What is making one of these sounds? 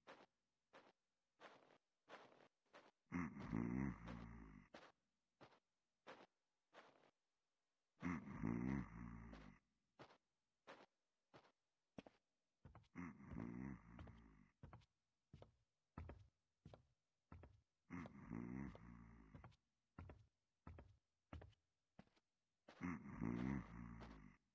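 Footsteps tread steadily across a floor.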